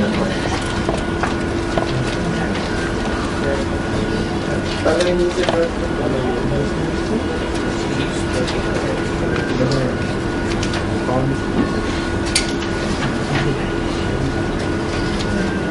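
Pens scratch on paper.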